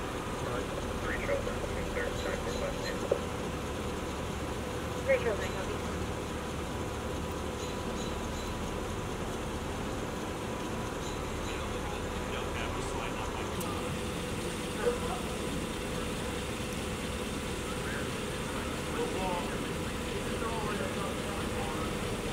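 A man speaks briefly over a police radio.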